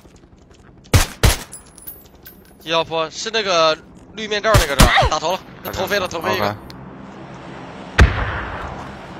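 Gunshots crack sharply from a game.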